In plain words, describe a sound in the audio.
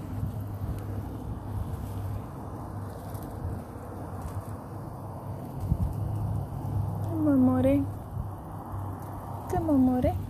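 A mesh cage rustles softly as a hand reaches into it.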